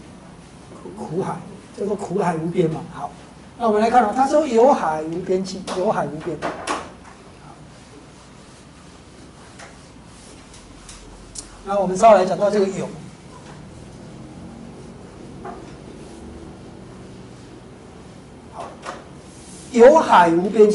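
An elderly man speaks calmly into a microphone, in pauses.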